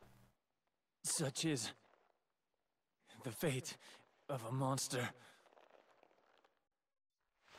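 A man speaks weakly and bitterly, in short broken phrases.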